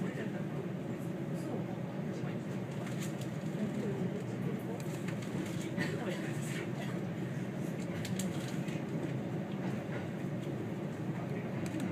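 Train wheels click over rail joints.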